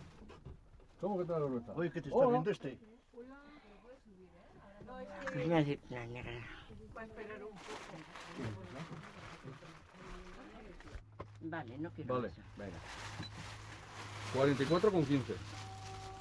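An elderly woman talks with animation close by.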